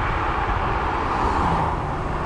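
A car passes close by in the other direction.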